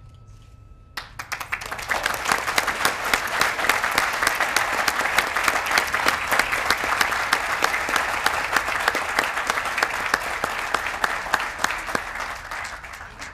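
A crowd applauds loudly and steadily.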